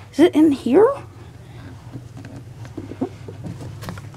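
A cardboard box scrapes and bumps as it is handled.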